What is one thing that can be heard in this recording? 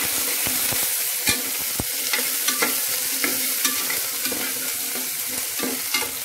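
A spoon scrapes and clinks against a metal pot.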